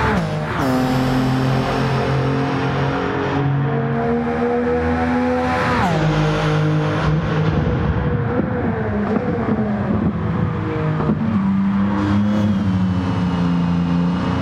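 A racing car's engine whines at high revs, its pitch climbing and dropping as it shifts gears.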